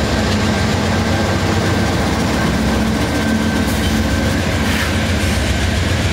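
A diesel locomotive engine rumbles loudly close by.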